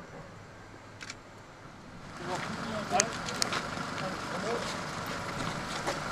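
Riot gear clatters as men walk.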